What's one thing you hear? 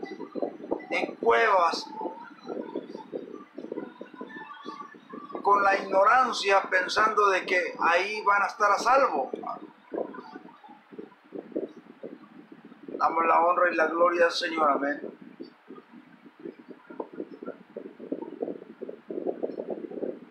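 A middle-aged man speaks close to a microphone, with animation, at times raising his voice.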